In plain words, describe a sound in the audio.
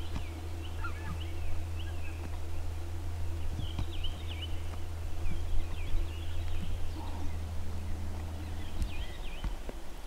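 Geese honk faintly in the distance.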